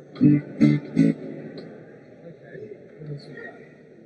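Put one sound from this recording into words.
A man strums an acoustic guitar a few times.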